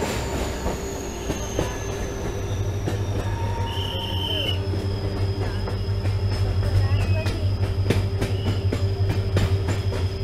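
A train rumbles steadily along the track, its wheels clacking over rail joints.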